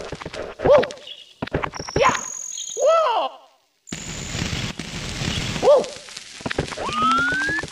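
Quick game footsteps patter in bursts.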